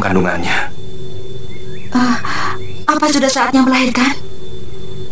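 A young woman speaks calmly and softly, close by.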